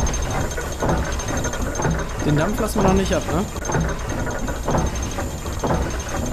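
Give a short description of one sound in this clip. A large machine hums and rumbles steadily.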